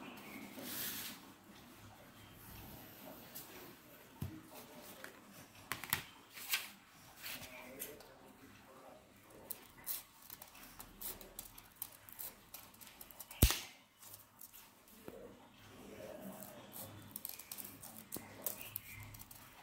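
Paper rustles as hands handle it.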